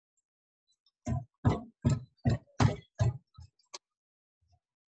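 A whisk beats rapidly against a metal pan.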